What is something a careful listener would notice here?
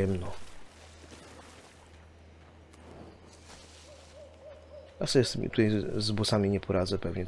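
Waves lap gently on a shore.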